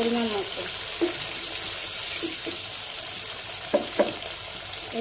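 A spatula scrapes and knocks against a pan.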